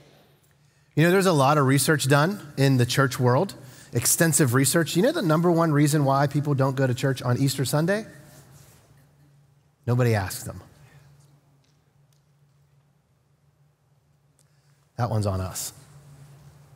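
A middle-aged man speaks with animation into a microphone, with a slight echo.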